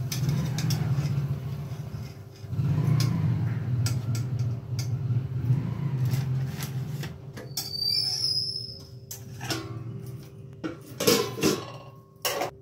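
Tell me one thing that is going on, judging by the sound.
Metal tongs clink against a metal wok.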